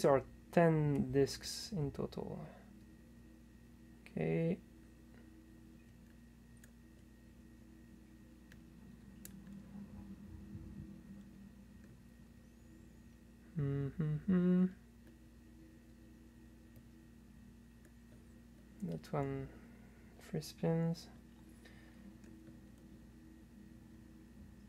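Metal picks scrape and click softly inside a lock.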